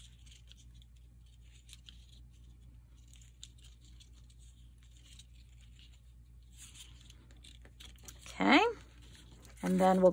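Paper rustles softly as it is folded and handled.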